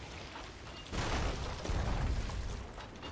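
A ship's cannon fires with a heavy boom.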